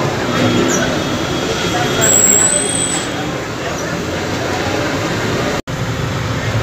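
A fan blower whirs steadily beside a grill.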